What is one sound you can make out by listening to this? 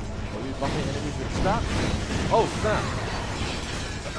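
Metal bolts scatter and clink as robots burst apart.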